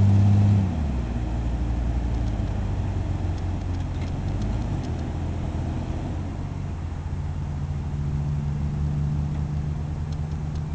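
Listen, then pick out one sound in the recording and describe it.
Tyres spin and scrape on loose dirt.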